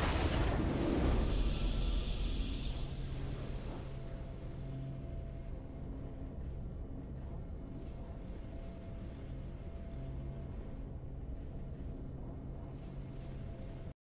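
Triumphant game music plays with a loud swell at first, then settles into soft sustained tones.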